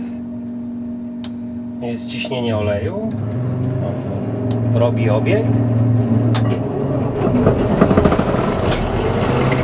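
A diesel engine hums steadily and grows louder.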